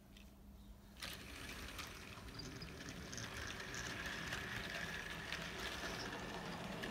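A small electric motor hums and whirs steadily as a model train runs along the track.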